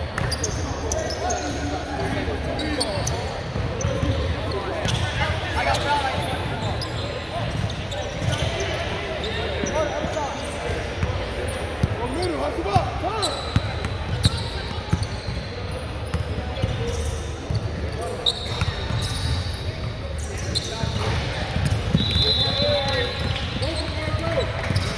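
Young players' voices call out across a large echoing gym.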